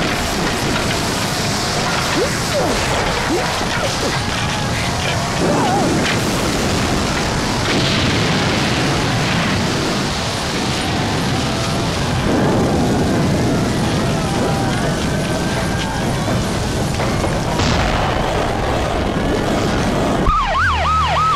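Explosions roar and crackle loudly.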